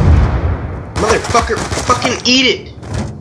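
A young man speaks excitedly into a headset microphone.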